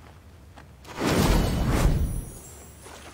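Magical effects whoosh and rumble in a burst.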